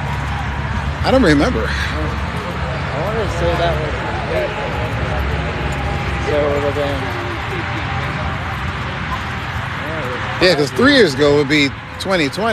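A young man talks nearby outdoors.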